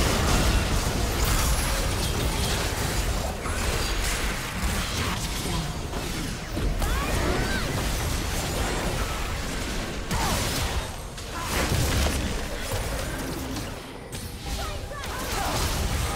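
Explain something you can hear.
Magic spells crackle and burst in a chaotic battle.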